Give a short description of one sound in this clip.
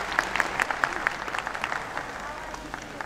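Sharp rhythmic claps ring out quickly.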